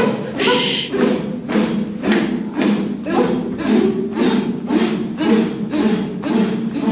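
Hands clap in a steady rhythm.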